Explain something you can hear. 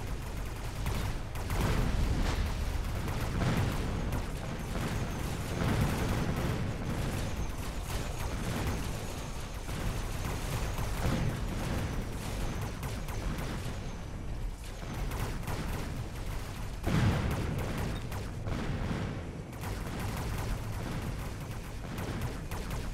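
Laser weapons and guns fire rapidly in a game battle.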